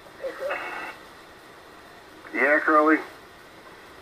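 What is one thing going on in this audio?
A radio receiver gives out short warbling tones.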